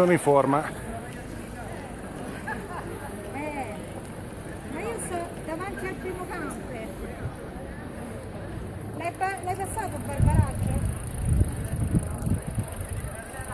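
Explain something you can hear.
A crowd chatters in the distance outdoors.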